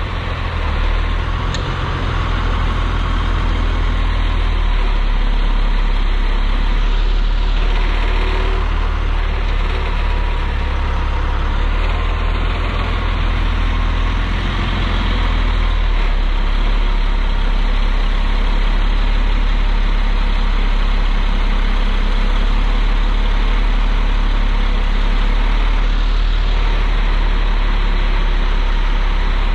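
A large truck's diesel engine idles nearby with a loud, steady rumble.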